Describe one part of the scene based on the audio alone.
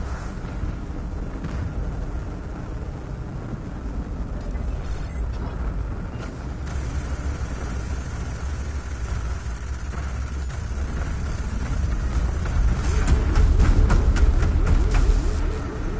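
Laser cannons fire in rapid bursts during a space battle.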